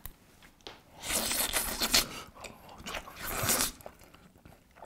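A young man loudly slurps noodles.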